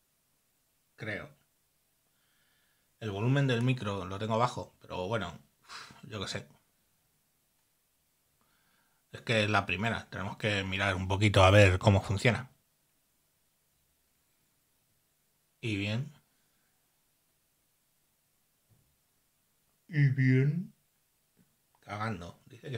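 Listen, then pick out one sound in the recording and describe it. An older man speaks calmly in bursts, close to a microphone.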